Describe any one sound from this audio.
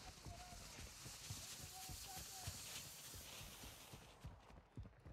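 A smoke grenade hisses steadily, then fades out.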